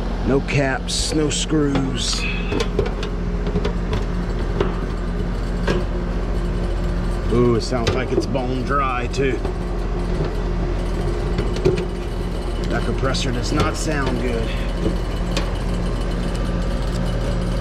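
A thin metal panel rattles and clanks as it is handled.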